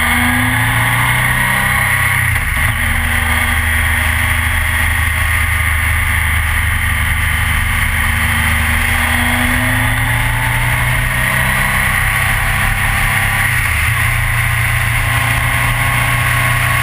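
A motorcycle engine roars steadily up close, shifting gear now and then.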